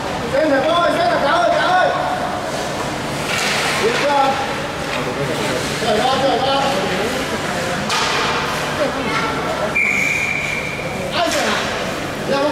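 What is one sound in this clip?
Hockey sticks clack against the puck and each other.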